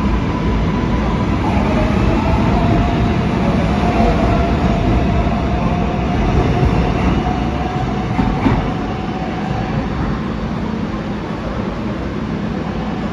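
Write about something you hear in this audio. A subway train rumbles and rattles past on its tracks, then fades into the distance.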